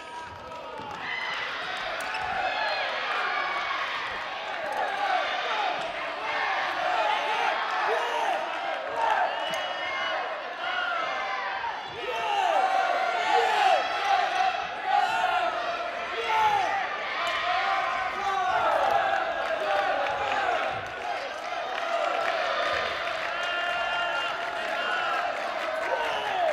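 Sports shoes squeak sharply and often on a hard court floor in a large echoing hall.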